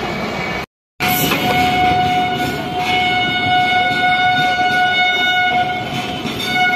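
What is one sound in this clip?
A freight train rolls past with a steady clatter of wheels on the rails.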